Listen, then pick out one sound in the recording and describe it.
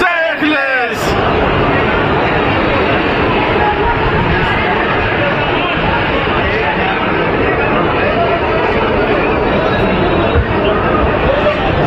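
A large crowd chatters and cheers noisily nearby.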